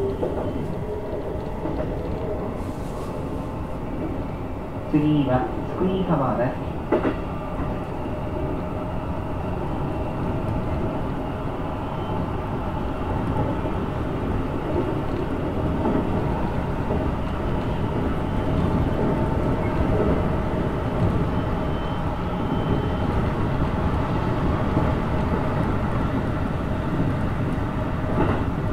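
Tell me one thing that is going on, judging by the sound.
A train rumbles steadily along its tracks, heard from inside a carriage.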